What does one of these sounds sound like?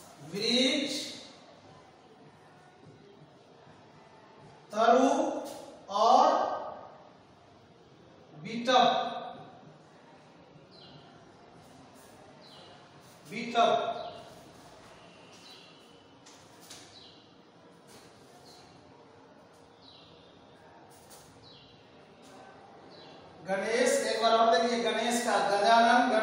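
A man speaks in short, loud phrases nearby.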